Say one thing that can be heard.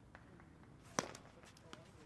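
A stick smacks a ball with a sharp crack.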